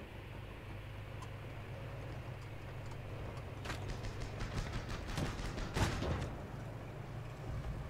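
An armoured car's engine rumbles steadily.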